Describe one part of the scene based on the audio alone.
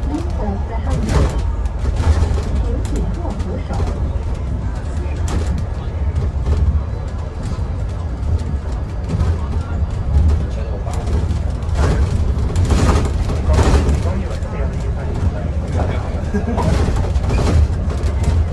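A bus body rattles and clatters over bumps in the road.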